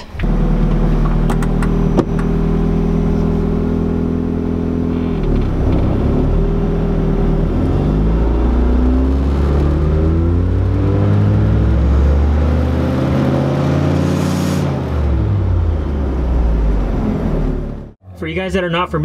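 A car engine idles and revs up and down, its pitch rising and falling.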